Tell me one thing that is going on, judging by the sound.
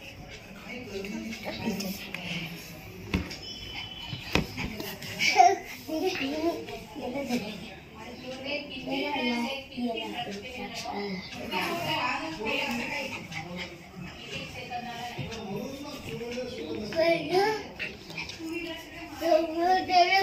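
Young children talk and shout playfully nearby.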